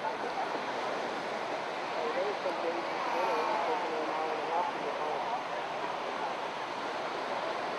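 Small waves break and wash onto the shore.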